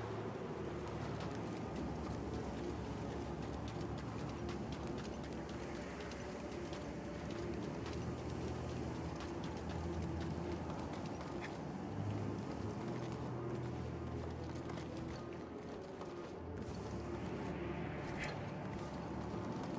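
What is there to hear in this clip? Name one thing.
Wind howls steadily.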